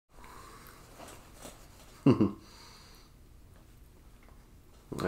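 A dog licks with soft wet smacks.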